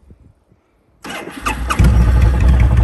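A motorcycle engine starts up.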